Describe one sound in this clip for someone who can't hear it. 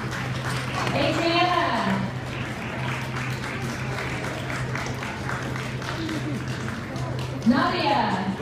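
Many young girls chatter and call out in a large echoing hall.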